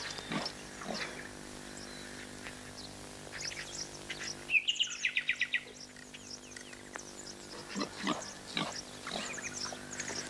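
A wild boar rustles through dry grass.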